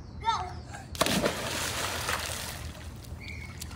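A young boy jumps into a pool with a loud splash.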